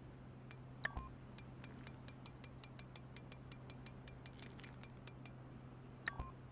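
Short electronic menu clicks tick in quick succession.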